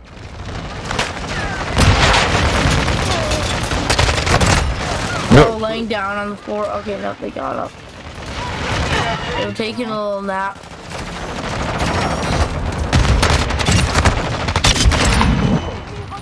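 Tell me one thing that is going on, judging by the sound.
Rapid rifle gunfire bursts out loudly.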